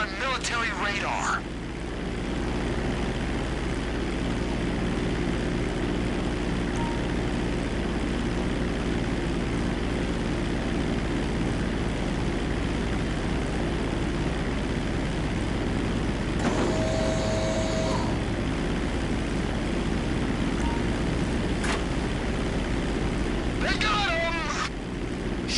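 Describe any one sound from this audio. A propeller plane's engine drones steadily throughout.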